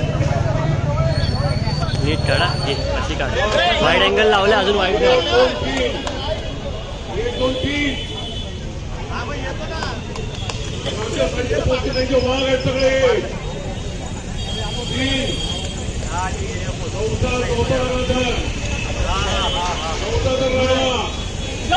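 A large crowd of young men chants together loudly outdoors.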